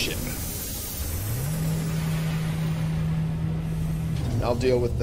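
A low mechanical hum rises and holds as a spacecraft docks.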